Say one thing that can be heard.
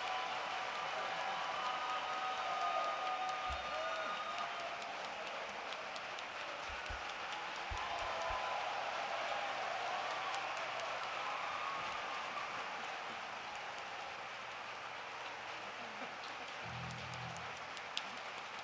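An orchestra plays in a large echoing hall.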